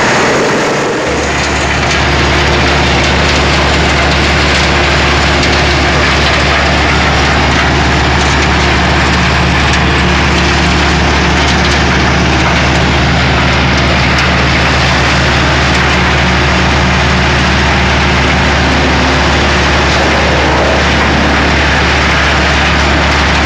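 A diesel engine rumbles with a deep, steady drone.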